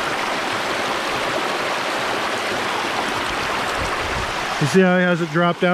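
A rocky stream rushes and roars steadily outdoors.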